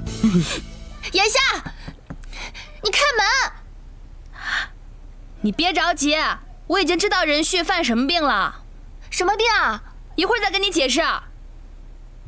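A young woman speaks animatedly and urgently, close by.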